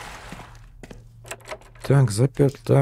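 A door handle rattles against a locked door.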